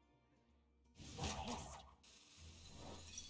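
A magical whoosh and chime sound as a card is played.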